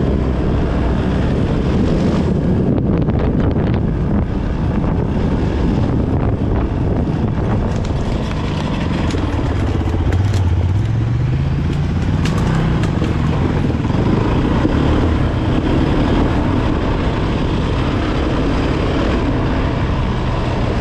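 Tyres crunch over a rough dirt track.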